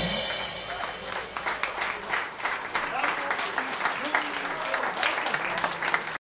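An audience applauds with clapping hands.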